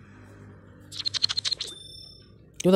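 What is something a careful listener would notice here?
A coin spins with rapid clicking.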